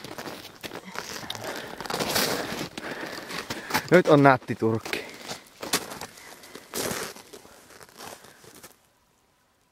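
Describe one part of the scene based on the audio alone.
Footsteps crunch in snow close by.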